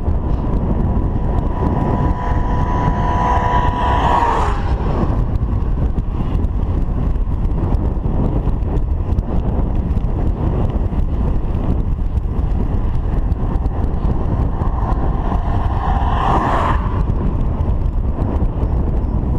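Wind buffets and rumbles as a bicycle rides along a road.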